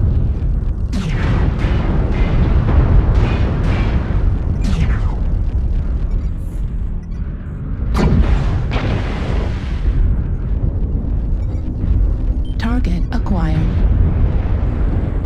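Heavy robot machinery rumbles steadily.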